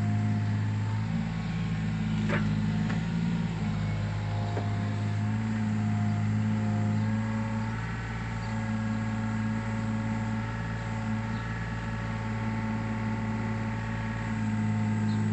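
A diesel engine runs steadily close by with a low hum.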